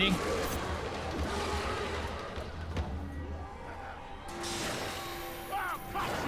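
Creatures snarl in a fight.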